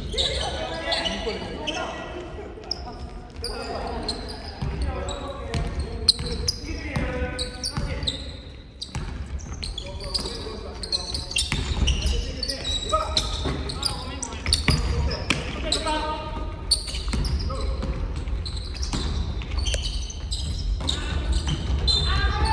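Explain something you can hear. Basketball shoes squeak on a wooden court in a large echoing gym.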